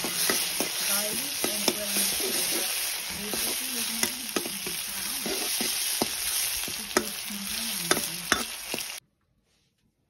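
A metal spatula scrapes and clinks against a metal pan.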